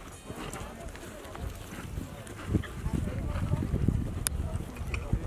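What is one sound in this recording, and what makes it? A horse's hooves thud on grass as it canters.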